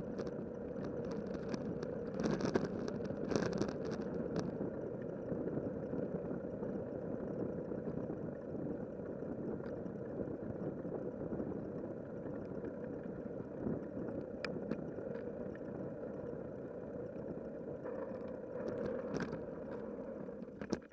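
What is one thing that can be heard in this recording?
Tyres roll and rumble over rough pavement.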